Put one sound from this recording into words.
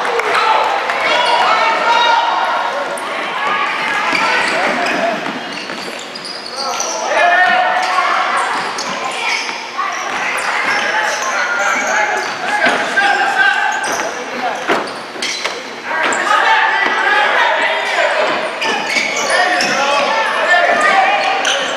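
A ball bounces and thuds on a hard floor.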